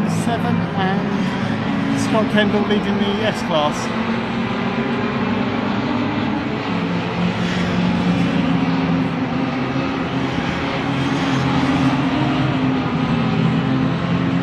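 Small racing car engines roar steadily as the cars speed past.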